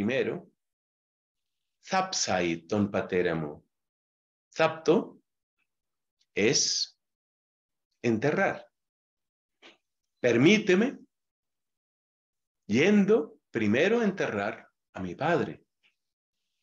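An elderly man speaks calmly through a microphone in short phrases, as on an online call.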